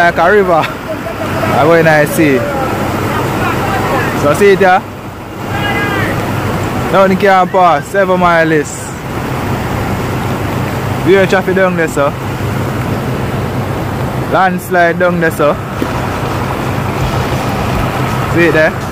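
Muddy floodwater rushes and churns steadily.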